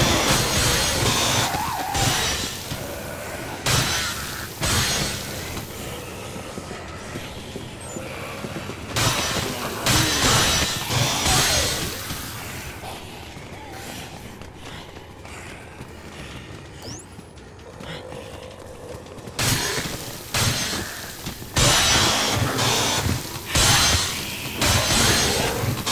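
Flesh tears with wet splatters.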